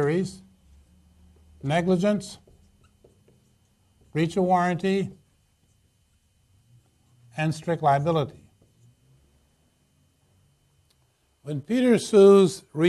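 A man speaks calmly in short phrases with pauses, like a lecturer explaining.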